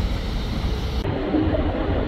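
A train rolls along an elevated track.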